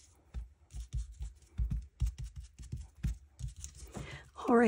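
A rubber stamp taps repeatedly on an ink pad with soft thumps.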